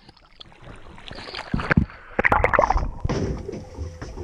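Water splashes loudly against a boat's hull.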